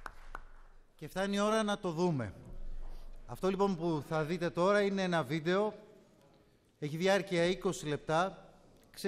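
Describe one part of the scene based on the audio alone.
A man speaks calmly into a microphone through a loudspeaker.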